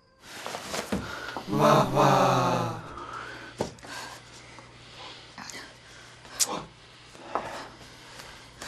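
A woman speaks with animation.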